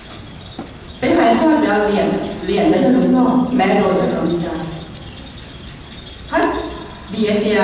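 A middle-aged woman speaks calmly through a microphone to a large room.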